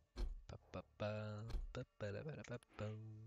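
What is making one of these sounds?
A man talks into a headset microphone with animation.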